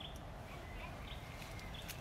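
Branches rustle as fruit is pulled from a tree.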